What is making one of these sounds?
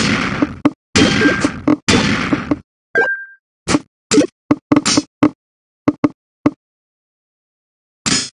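Short video game sound effects click and thud as falling blocks land.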